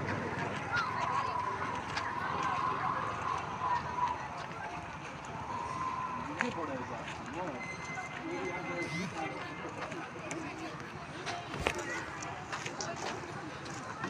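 Wooden walking sticks tap on the ground.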